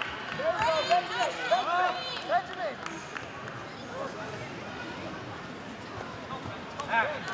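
Spectators shout with high, excited voices in a large hall.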